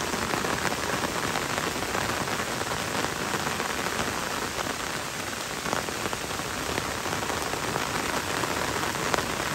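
Gentle rain patters steadily on leaves and wet ground.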